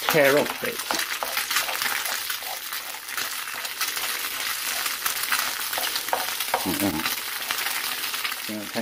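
Eggs sizzle steadily in a hot frying pan.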